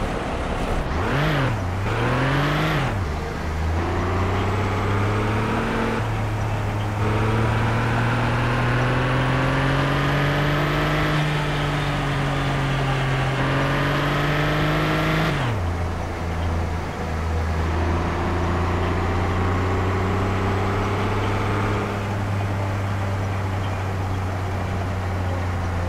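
A car engine hums and revs up and down as it drives.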